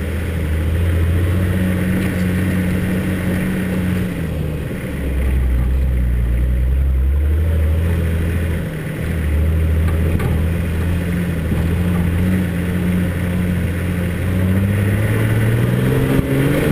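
Tyres crunch and rumble over a dirt track.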